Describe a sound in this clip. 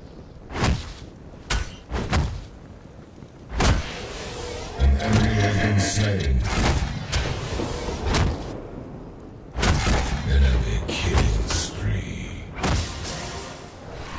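Heavy weapon blows strike with sharp impacts.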